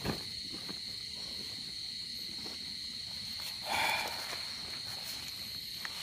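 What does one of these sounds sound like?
Tent fabric rustles and crinkles close by as a man moves about.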